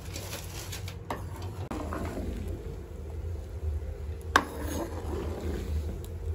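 A metal ladle scrapes against a wok.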